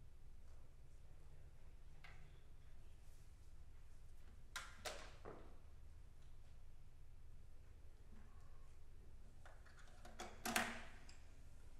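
A guitar knocks and thumps as it is lifted and handled.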